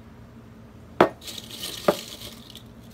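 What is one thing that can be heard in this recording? A ceramic plate knocks against a metal baking tray.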